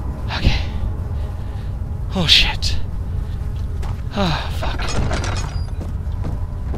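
Footsteps thud slowly on wooden floorboards.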